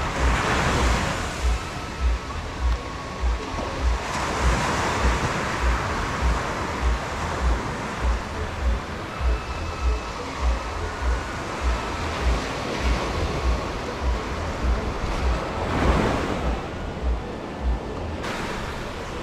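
Waves wash onto the shore nearby.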